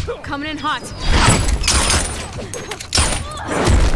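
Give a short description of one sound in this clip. A gun fires a sharp shot.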